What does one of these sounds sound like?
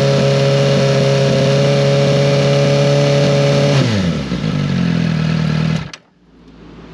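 A motorcycle engine revs high and steady, then slows down and cuts off.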